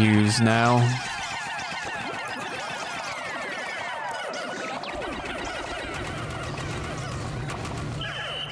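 Small creatures chatter and squeak busily.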